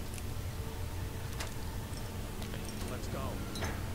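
A lock snaps open with a sharp click.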